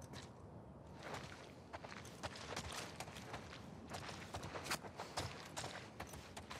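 Footsteps thud and scuff on a hard wooden floor.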